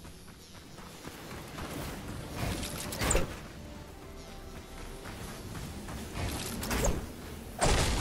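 Footsteps run over the ground.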